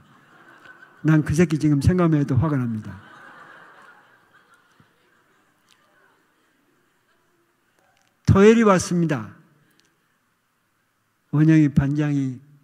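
An elderly man speaks with animation into a microphone in a large echoing hall.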